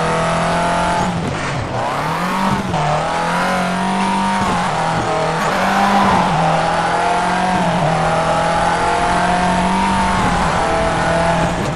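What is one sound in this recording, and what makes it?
A rally car engine roars and revs up and down through gear changes.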